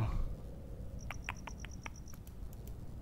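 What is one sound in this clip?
Keypad buttons beep softly as they are pressed.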